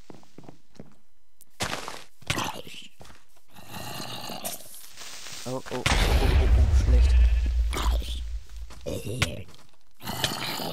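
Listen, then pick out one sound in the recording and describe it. Zombies groan nearby.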